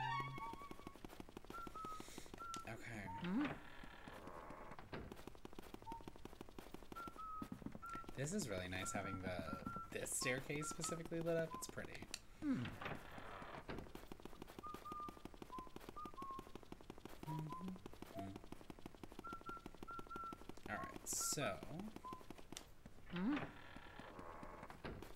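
Soft, eerie game music plays with short high notes.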